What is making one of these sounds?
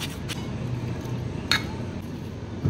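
Tongs clink against a bowl while tossing a salad.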